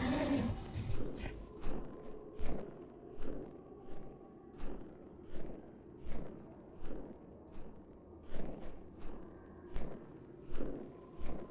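Hooves thud on soft ground at a steady trot.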